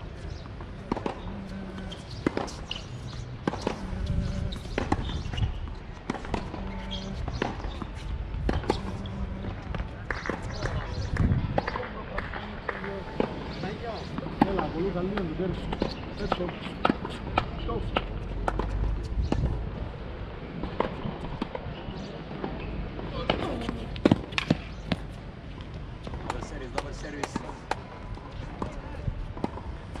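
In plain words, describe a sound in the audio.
Tennis balls are struck sharply with rackets, back and forth.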